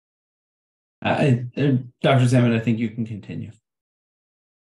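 A younger man speaks calmly over an online call.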